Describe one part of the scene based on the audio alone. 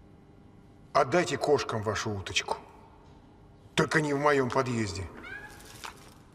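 A man speaks angrily, close by.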